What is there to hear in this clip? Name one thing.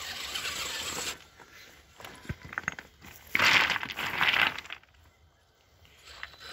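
A small remote-controlled truck's wheels scrabble and knock over loose rocks.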